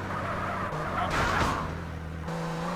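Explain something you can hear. Tyres screech as a car skids around a turn.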